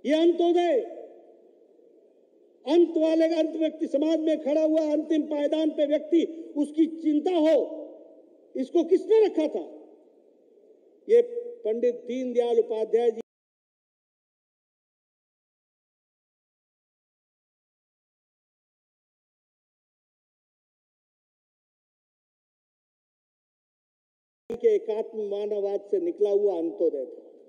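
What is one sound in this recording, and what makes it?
An elderly man speaks forcefully into a microphone, in short bursts with pauses.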